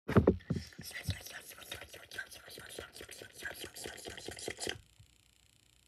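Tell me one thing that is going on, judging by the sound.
Sticky slime crackles and squelches as it is stretched.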